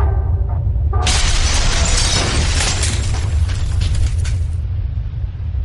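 A wall bursts apart with a loud crash of falling debris.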